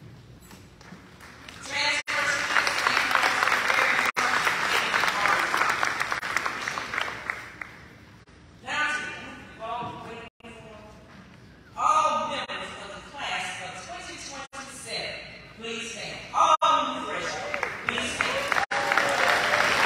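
A large crowd of young people chatters and calls out in a big echoing hall.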